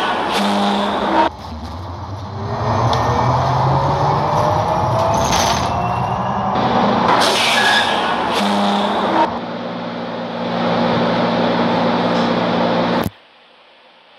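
Bus tyres rumble on the road.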